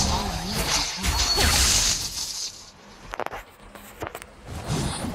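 Fantasy game combat effects whoosh and clash.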